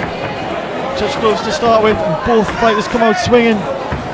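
Men in a crowd shout loudly and excitedly.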